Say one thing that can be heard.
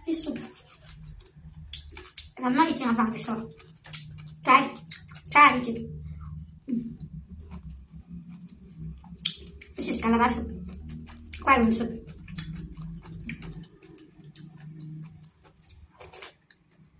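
A young woman chews and smacks her food loudly close to a microphone.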